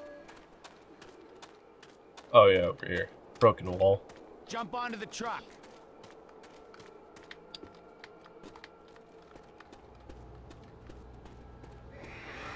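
Footsteps tread steadily over grass and dirt.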